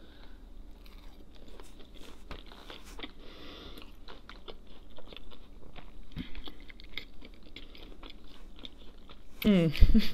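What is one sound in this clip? A young woman chews food with soft, wet mouth sounds.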